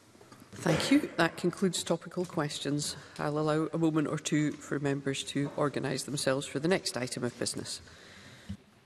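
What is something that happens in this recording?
A middle-aged woman speaks calmly into a microphone in a large hall.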